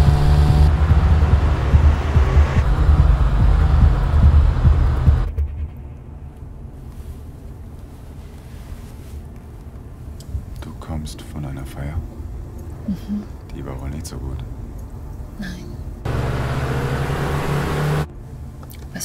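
A car engine roars as the car speeds along a road.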